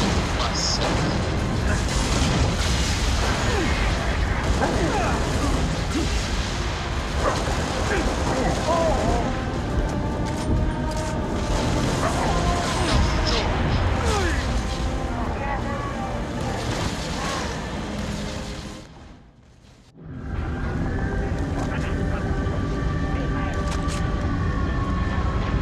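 A young man talks with animation into a microphone.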